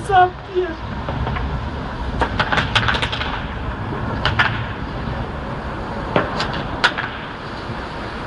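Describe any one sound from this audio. Industrial machinery rumbles low and steadily in the distance.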